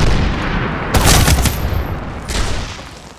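A rifle fires a quick burst of loud shots.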